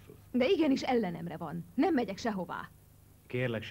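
A woman speaks tensely nearby.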